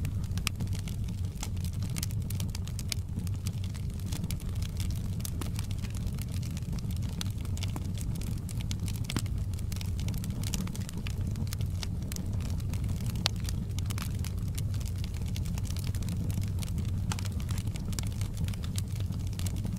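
Flames roar with a low steady rumble.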